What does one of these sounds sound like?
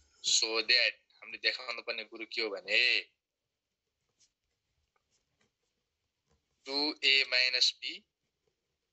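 A young man speaks calmly into a close microphone, explaining.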